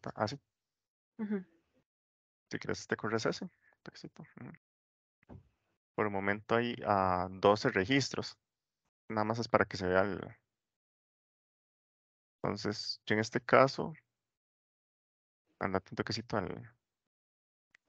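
A young woman talks calmly over an online call.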